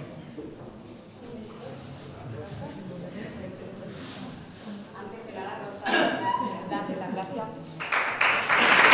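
A woman speaks softly through a microphone.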